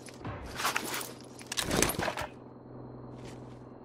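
A gun rattles as it is raised.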